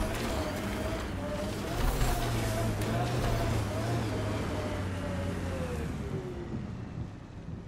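An engine roars loudly, then winds down and fades.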